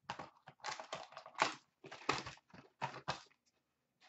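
Paper rustles as a pack is torn open.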